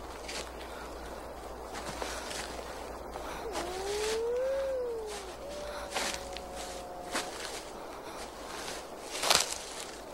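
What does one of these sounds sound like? A woman breathes softly close by.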